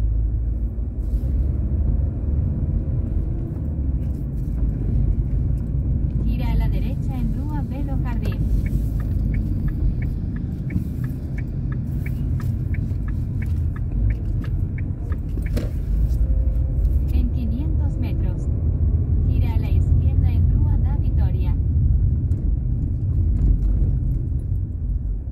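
A car engine hums and tyres rumble steadily on the road, heard from inside the car.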